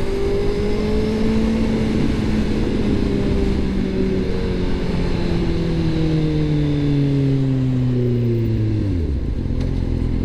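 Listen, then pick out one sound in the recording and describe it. A motorcycle engine hums and winds down as the bike slows.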